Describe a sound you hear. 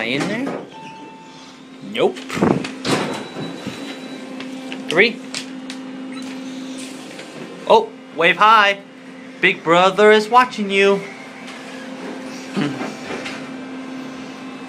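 An elevator motor hums steadily.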